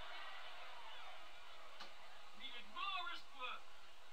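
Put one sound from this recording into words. A dart thuds into a dartboard.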